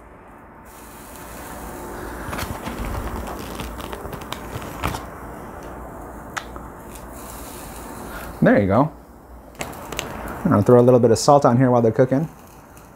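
Meat sizzles softly over hot coals.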